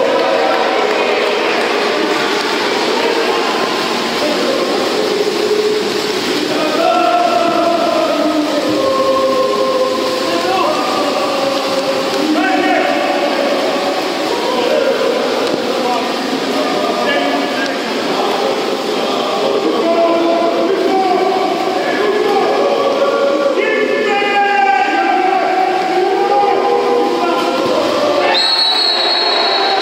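Water splashes as swimmers thrash in a pool.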